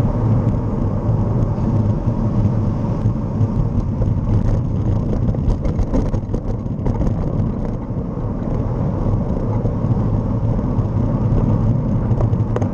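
Wind rumbles loudly and steadily against the microphone while moving.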